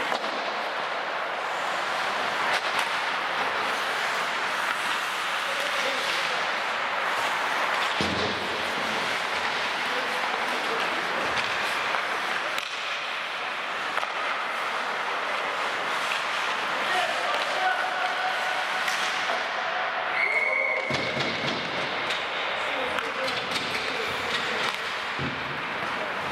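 Skate blades scrape and hiss across the ice in a large echoing hall.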